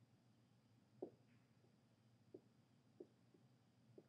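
A marker taps on a whiteboard.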